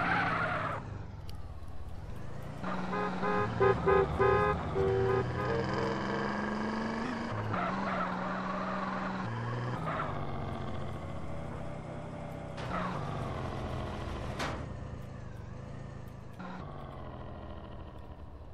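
A car engine revs loudly.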